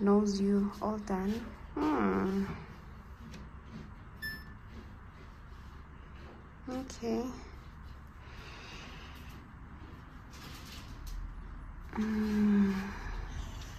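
A washing machine plays short electronic chime melodies.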